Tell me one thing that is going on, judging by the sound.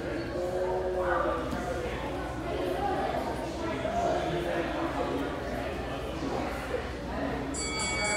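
Many voices chatter and call out throughout a large, echoing hall.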